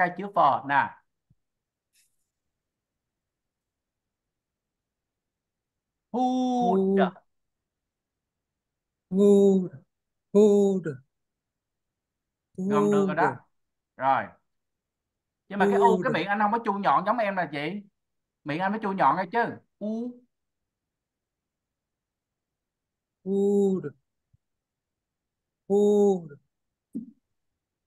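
A woman speaks slowly and clearly over an online call, pronouncing single words.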